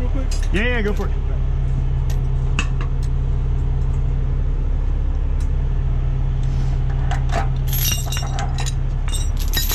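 A vehicle engine idles with a steady low hum.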